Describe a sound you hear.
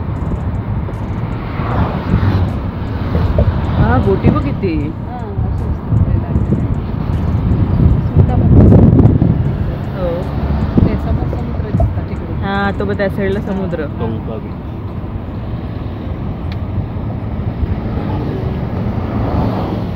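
A vehicle's engine and tyres rumble steadily on the road.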